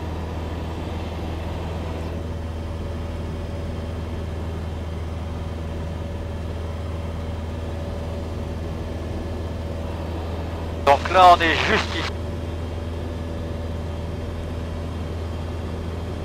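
A small plane's engine drones steadily throughout.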